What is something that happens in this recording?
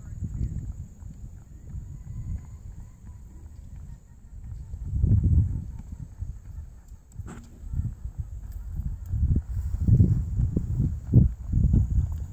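Horse hooves thud softly on grass at a trot.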